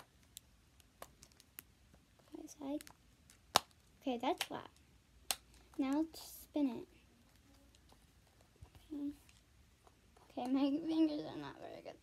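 Silicone bubbles on a toy pop with soft clicks.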